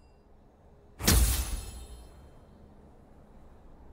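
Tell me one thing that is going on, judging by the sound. A game menu plays a swelling chime.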